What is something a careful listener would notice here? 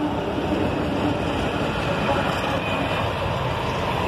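A diesel locomotive engine roars as it passes.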